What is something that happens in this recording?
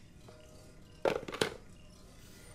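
A telephone handset clunks down onto its cradle.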